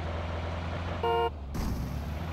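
A car horn honks briefly.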